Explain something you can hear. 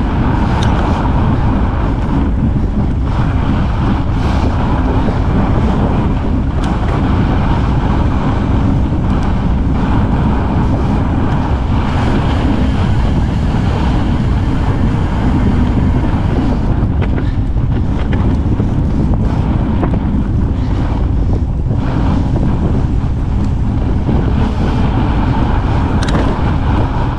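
Wind rushes loudly past a fast-moving rider outdoors.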